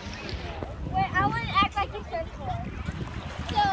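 A boy talks loudly and excitedly close by.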